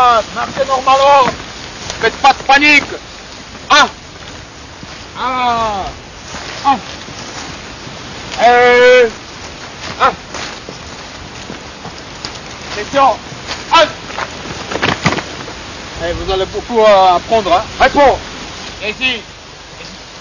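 Young men shout and call out loudly, close by, outdoors.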